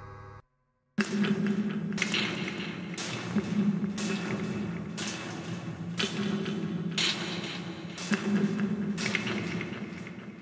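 Synthesizer chords pulse in a steady rhythm.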